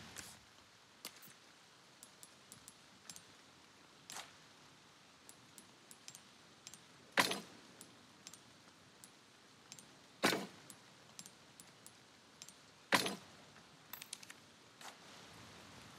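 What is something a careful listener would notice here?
Soft menu clicks tick at intervals.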